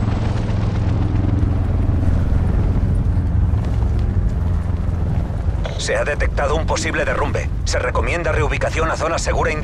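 Wind roars steadily past a falling skydiver.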